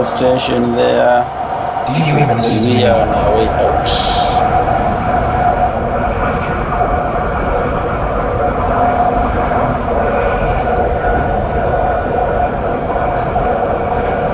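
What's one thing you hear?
A diesel truck engine drones while cruising on a highway.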